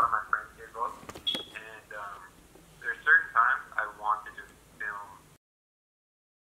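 A young man talks on the phone, close by, calmly.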